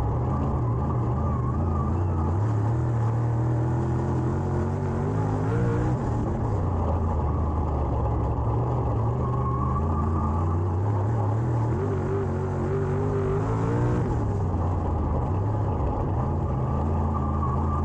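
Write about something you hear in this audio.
A race car engine roars loudly up close, revving up and down.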